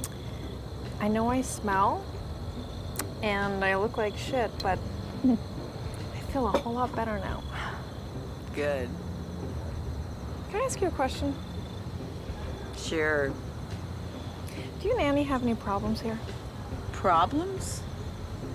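A woman speaks calmly and quietly nearby.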